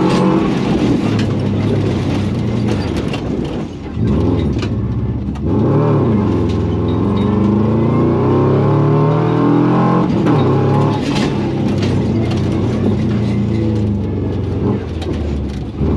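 A rally car engine roars loudly, revving up and down through the gears.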